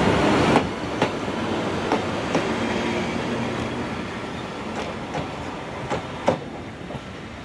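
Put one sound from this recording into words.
Train wheels clack over rail joints.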